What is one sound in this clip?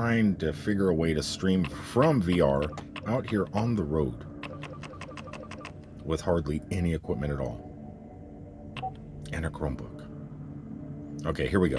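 A finger presses buttons on a device with soft clicks.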